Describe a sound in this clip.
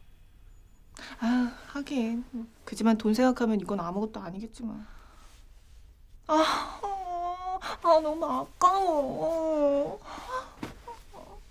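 A young woman speaks nearby in a whining, complaining voice.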